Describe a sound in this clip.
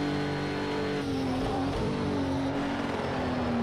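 A racing car engine drops in pitch and burbles as the car slows down.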